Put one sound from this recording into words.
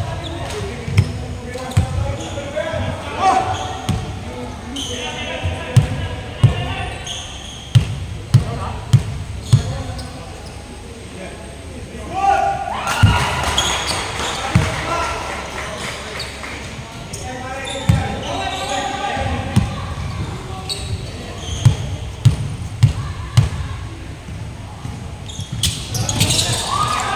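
Young men call out and shout during play.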